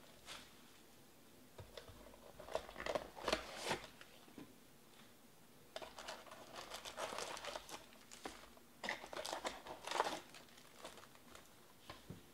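Cardboard packaging rustles and scrapes as a box is opened by hand.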